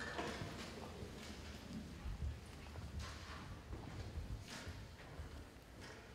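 A school orchestra plays strings and winds in a large hall.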